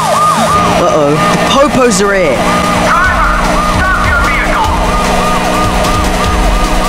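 A police siren wails steadily up and down.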